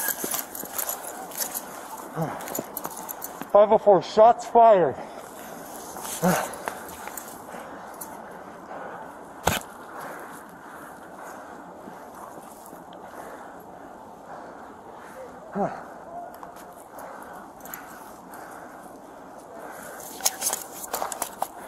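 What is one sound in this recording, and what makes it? Footsteps scuff on pavement outdoors.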